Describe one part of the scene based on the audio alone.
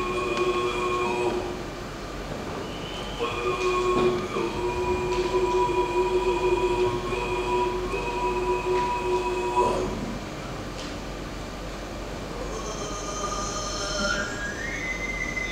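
Bowed strings play a droning accompaniment.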